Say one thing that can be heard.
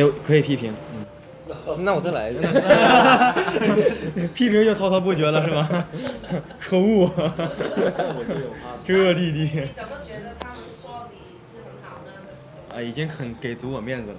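Young men talk with animation close to a microphone.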